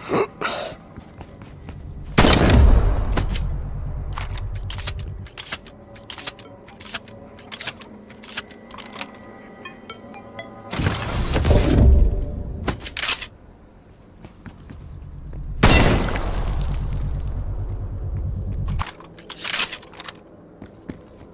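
A gun fires in quick, sharp shots.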